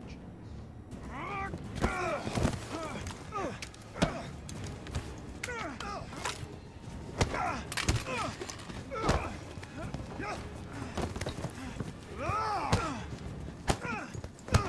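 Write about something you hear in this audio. Two men grunt and strain as they fight.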